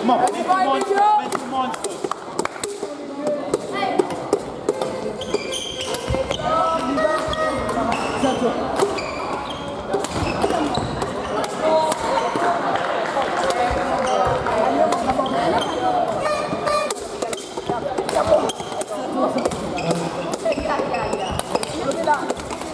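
Sports shoes squeak on a hall floor.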